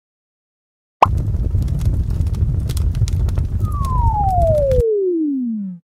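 A campfire crackles and roars.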